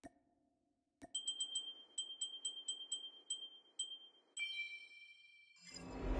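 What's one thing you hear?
Quick electronic chimes ring out in a rapid run.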